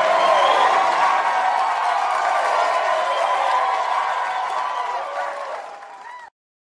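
A crowd applauds loudly in a large echoing hall.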